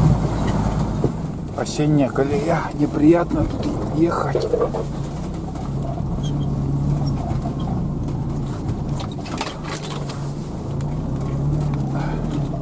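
A vehicle bumps and rattles over uneven ground.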